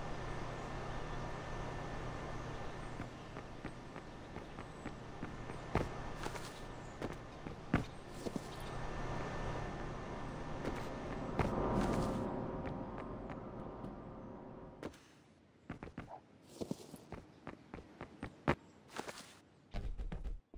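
Soft footsteps pad along a hard floor.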